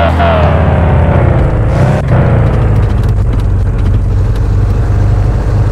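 A car engine roars loudly, its pitch dropping and then climbing again after a gear change.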